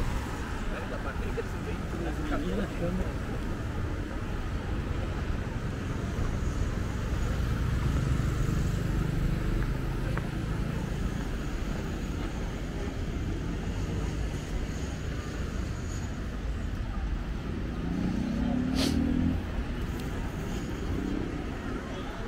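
Traffic hums steadily along a nearby street outdoors.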